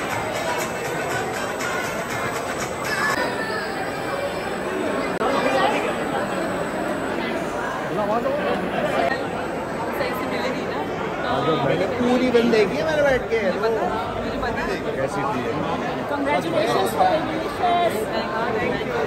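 A crowd chatters.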